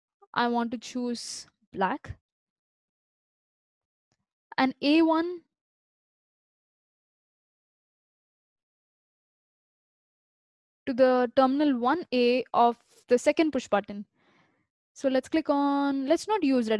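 A young person talks calmly and closely into a microphone, in short bursts with pauses.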